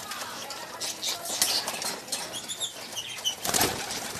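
Pigeons flap their wings in short bursts.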